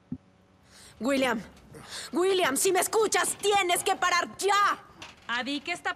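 A young woman speaks urgently and with alarm.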